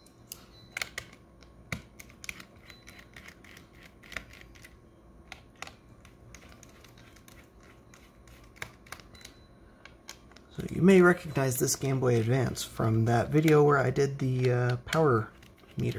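Small plastic parts click and tap as they are handled.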